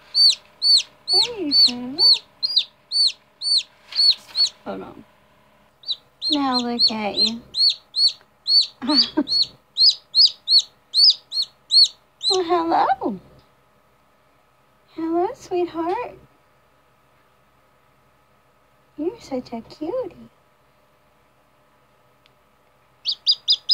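A baby bird cheeps rapidly in high, sharp peeps close by.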